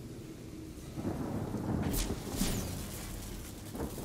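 A crackling electric blast strikes with a sharp bang.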